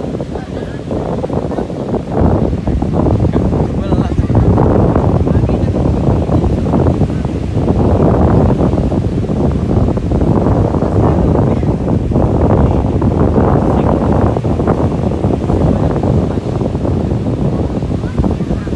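Wind blusters loudly across the microphone outdoors.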